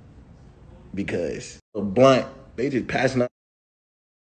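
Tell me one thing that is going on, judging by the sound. A young man talks casually into a phone microphone.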